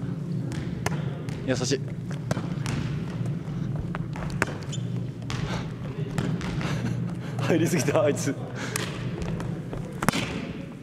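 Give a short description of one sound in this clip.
Sneakers squeak and thump on a wooden gym floor in a large echoing hall.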